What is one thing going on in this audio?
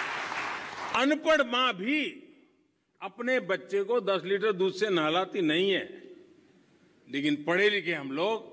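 An elderly man speaks with emphasis into a microphone over loudspeakers.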